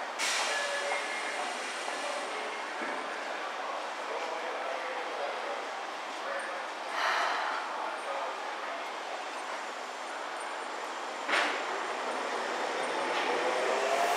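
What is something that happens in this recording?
A train hums and squeals as it pulls out of a station.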